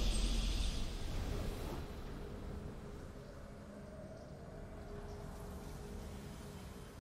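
A triumphant game fanfare booms and then slowly fades into soft music.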